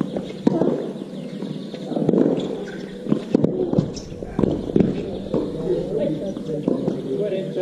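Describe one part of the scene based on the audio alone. Sneakers squeak and scuff on a hard court.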